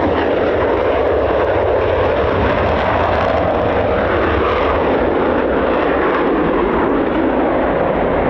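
A jet engine roars loudly as a fighter plane climbs away.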